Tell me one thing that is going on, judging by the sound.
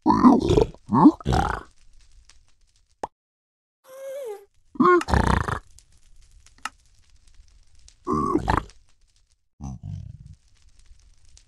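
A pig-like creature grunts and snorts in short bursts.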